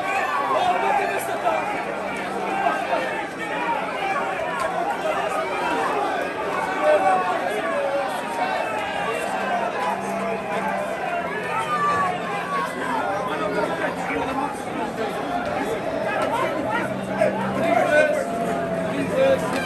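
A large crowd chatters and cheers loudly in a big echoing stadium.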